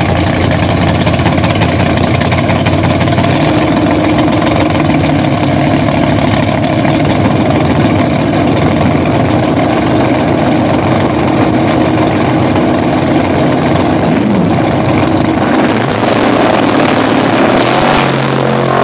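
Two drag racing engines idle with a loud, rough rumble nearby.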